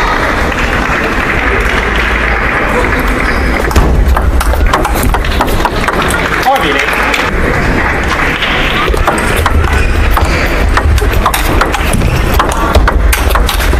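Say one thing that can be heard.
A ping-pong ball clicks sharply back and forth off paddles and the table.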